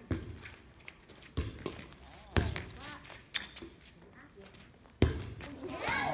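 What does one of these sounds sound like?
A volleyball is struck with sharp slaps outdoors.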